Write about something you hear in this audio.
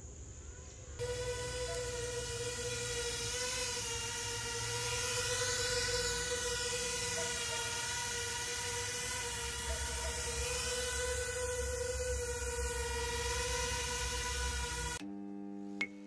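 A small drone's propellers whine loudly and steadily up close.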